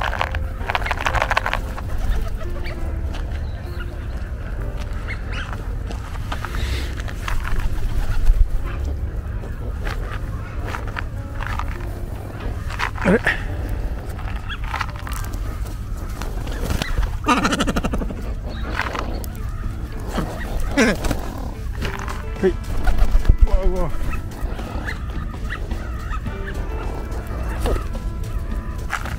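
Ducks quack on the water now and then.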